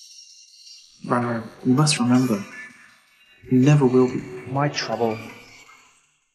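A young man speaks quietly and seriously up close.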